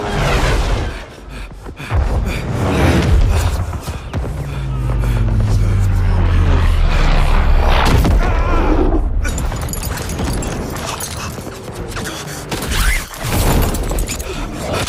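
Wind rushes past in a strong roar.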